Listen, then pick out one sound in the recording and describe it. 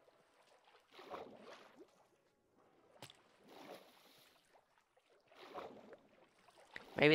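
Water splashes in short bursts as a swimmer paddles.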